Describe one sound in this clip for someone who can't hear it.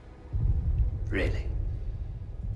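A man speaks in a low voice nearby.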